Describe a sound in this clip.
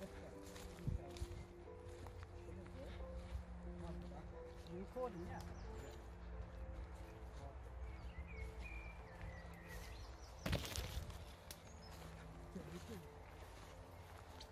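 Footsteps crunch and rustle through tall grass and undergrowth.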